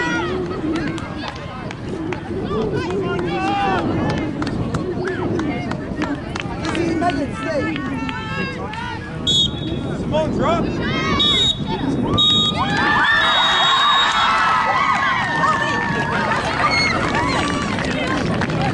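Players shout to each other across an open outdoor field.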